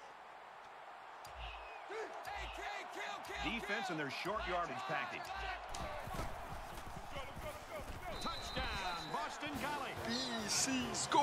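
A stadium crowd cheers and roars, growing louder.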